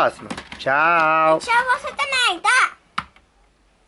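A young boy speaks with animation close by.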